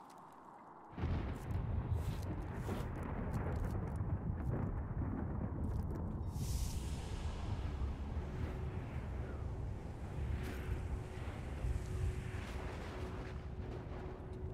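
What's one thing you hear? A swirling magical portal hums with a low rumble.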